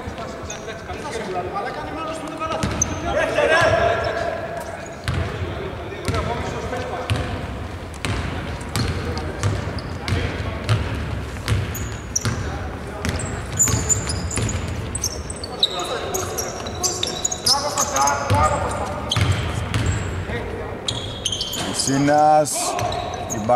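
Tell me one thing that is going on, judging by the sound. A basketball bounces on a hardwood court in a large echoing arena.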